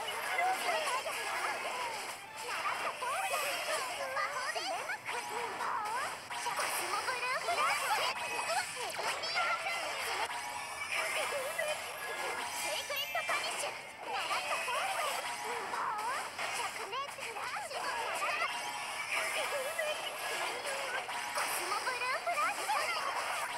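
Magic blasts and sword hits crash and ring out in a fast game battle.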